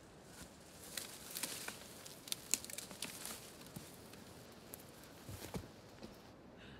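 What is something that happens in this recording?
Dry brush and twigs crackle and snap as a man scrambles through undergrowth.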